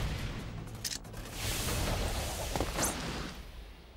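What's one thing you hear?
A blade swishes sharply through the air.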